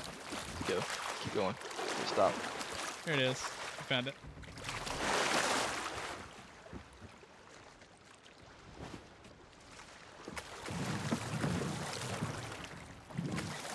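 Sea water washes and splashes against a boat.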